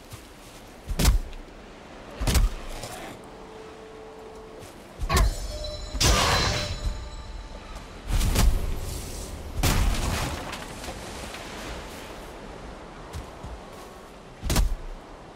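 An axe chops wood with sharp, hollow knocks.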